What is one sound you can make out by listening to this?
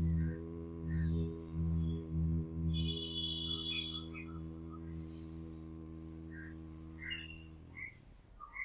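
A man hums a low, steady tone close by.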